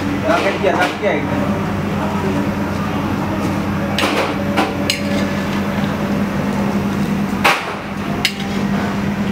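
A metal ladle clinks and scrapes against a frying pan.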